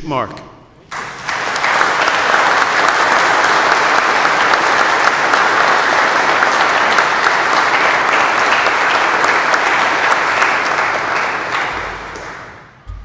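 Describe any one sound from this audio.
A crowd applauds steadily, then the clapping fades.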